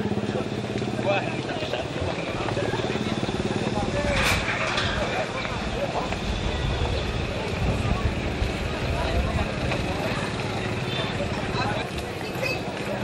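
Street noise and a crowd murmur fill the air outdoors.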